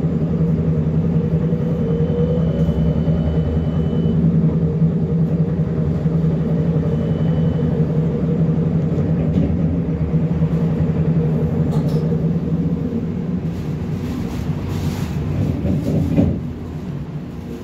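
A bus engine hums steadily from inside as the bus rides along.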